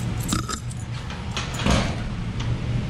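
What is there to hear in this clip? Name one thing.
A padlock rattles against a metal door.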